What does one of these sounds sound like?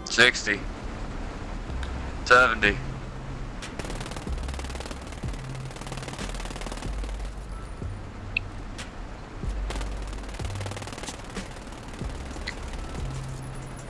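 A heavy tank engine rumbles low.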